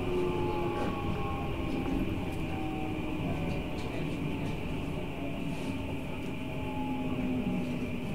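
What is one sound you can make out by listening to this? A train's motor hums with a slowly shifting whine.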